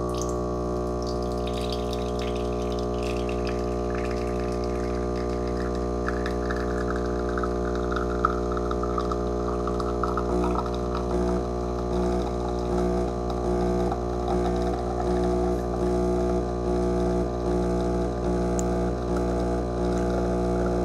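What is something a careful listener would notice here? Coffee trickles and drips into a glass cup.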